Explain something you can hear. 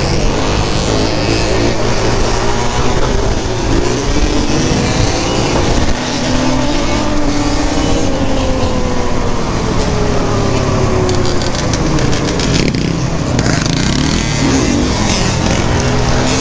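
Wind buffets loudly against a moving rider.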